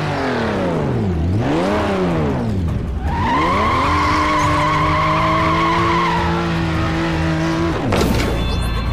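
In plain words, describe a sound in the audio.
A race car engine revs hard and roars.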